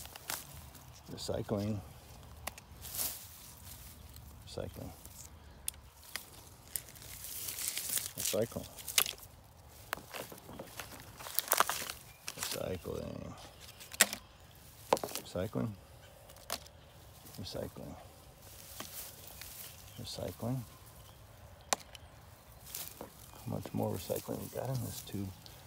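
A hand rustles through dry grass.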